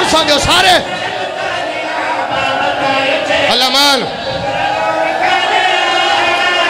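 A man sings a lament loudly through a loudspeaker.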